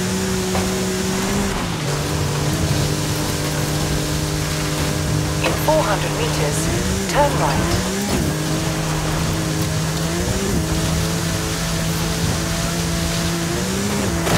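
A racing car engine roars at high revs, dropping briefly as gears shift.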